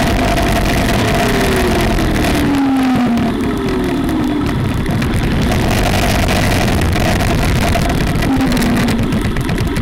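A motorcycle engine ahead shifts down and slows, its pitch falling.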